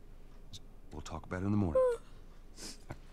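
A young girl speaks softly and sleepily.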